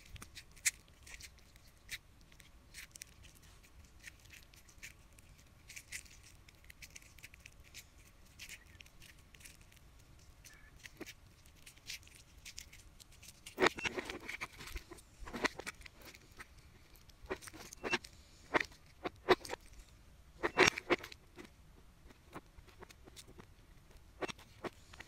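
Wet slime squelches and clicks as fingers squeeze it.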